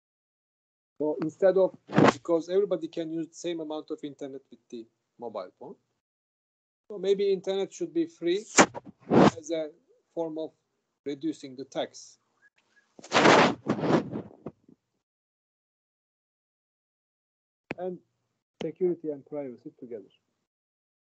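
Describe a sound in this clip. A middle-aged man speaks calmly into a microphone over an online call, with pauses.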